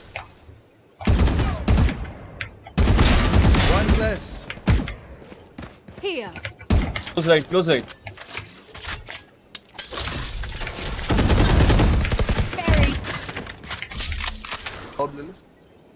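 Rifle shots fire in short bursts.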